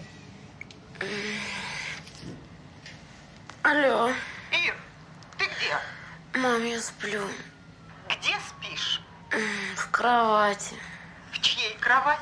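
A young woman talks sleepily and quietly, close by.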